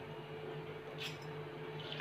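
A hand presses and rustles soaked grains in a metal jar.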